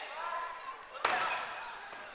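A large ball is struck with a dull thump.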